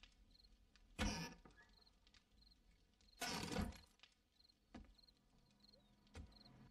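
A wooden door is struck with heavy thuds.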